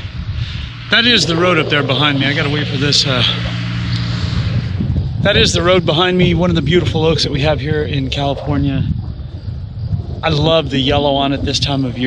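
An older man talks close to the microphone, with animation.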